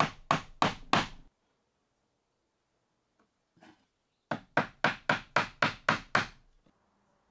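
A mallet strikes a chisel into wood in quick, sharp knocks.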